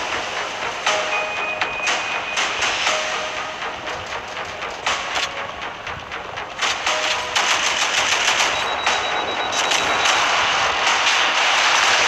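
Cannon fire rattles in rapid bursts.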